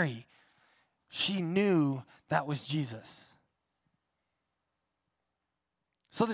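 A man speaks with feeling through a microphone in a large echoing hall.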